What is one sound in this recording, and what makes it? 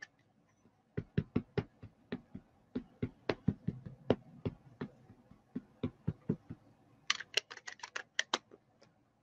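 An ink pad taps repeatedly against a rubber stamp.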